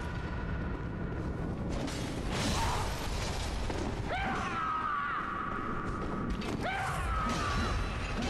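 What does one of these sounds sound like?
Blades swing and slash in a fight.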